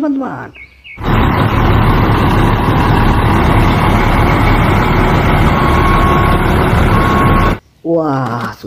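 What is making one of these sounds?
A diesel truck engine rumbles loudly and steadily.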